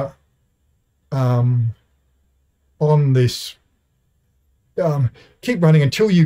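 A middle-aged man speaks calmly and clearly into a close microphone, with pauses between phrases.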